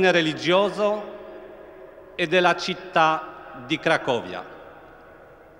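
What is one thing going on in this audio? A man sings a chant through loudspeakers, echoing across a large open square.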